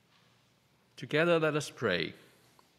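An elderly woman speaks briefly into a microphone.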